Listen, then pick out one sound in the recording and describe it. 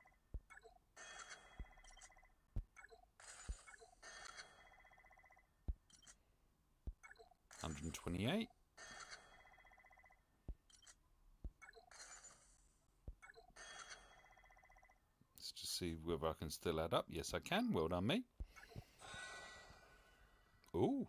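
Short bright game chimes ring as menus open and close.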